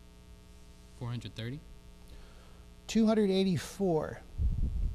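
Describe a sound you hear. A young man speaks briefly and clearly into a microphone.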